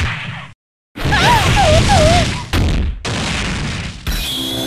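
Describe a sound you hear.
Rapid blasts and hits crash and burst in a video game fight.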